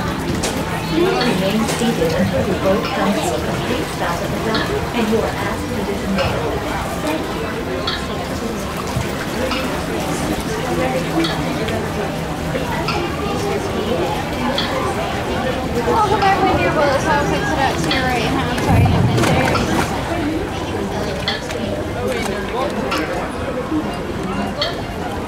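Water laps and splashes against a moving boat.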